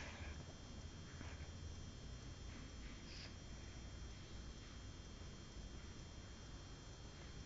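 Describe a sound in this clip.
A young child softly sucks a thumb.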